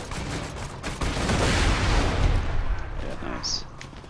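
A short explosion booms and rumbles.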